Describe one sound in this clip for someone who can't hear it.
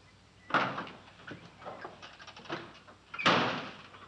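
A man climbs into a truck cab with creaks and shuffles.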